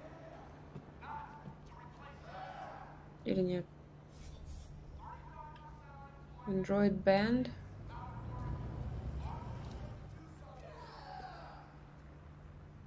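A young woman talks into a microphone with animation, close by.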